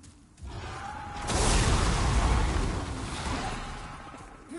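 A dragon breathes a roaring blast of fire.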